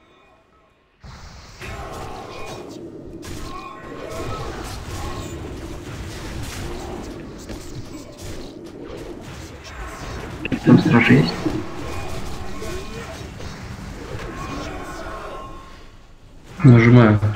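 Weapons clash in a fight.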